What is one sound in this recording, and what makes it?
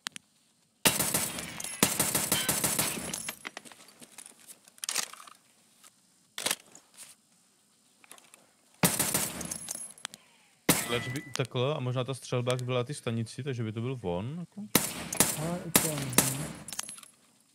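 A rifle fires rapid bursts of shots in an echoing indoor range.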